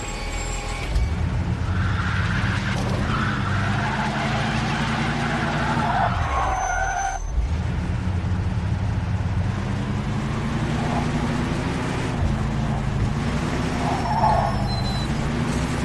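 A car engine revs and roars as the car speeds along.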